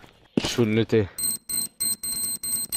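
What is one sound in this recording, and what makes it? An electronic bomb beeps in a fast, steady rhythm.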